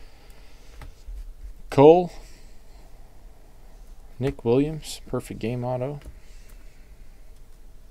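Plastic card sleeves rustle softly as they are shuffled in a hand.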